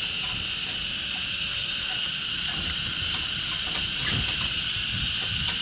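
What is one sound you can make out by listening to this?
A cycle rickshaw rattles along a concrete road.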